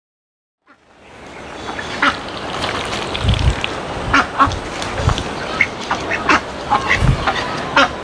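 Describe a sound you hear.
Ducks quack softly outdoors.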